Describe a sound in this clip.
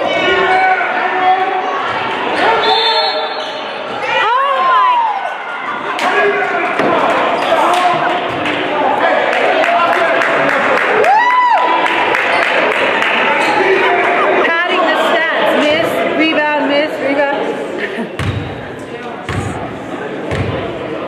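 A basketball thuds on a wooden floor.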